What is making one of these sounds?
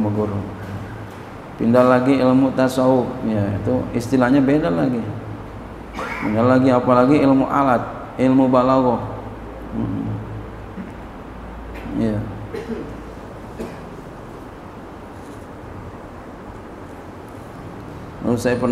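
A middle-aged man speaks calmly into a microphone, with pauses, in a slightly echoing room.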